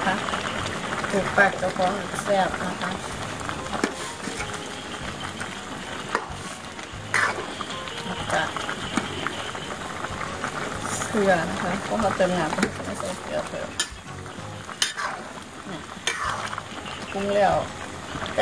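A ladle stirs a thick stew, clinking and scraping against a metal pan.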